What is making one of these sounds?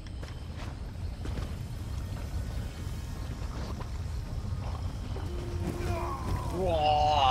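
Lava rumbles low and steadily.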